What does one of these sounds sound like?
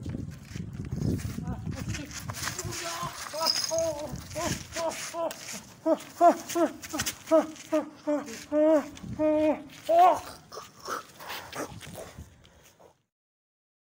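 A young man cries out in distress.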